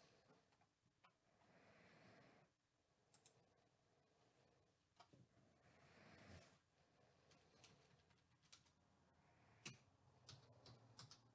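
A plastic card case taps and clicks as a hand turns it.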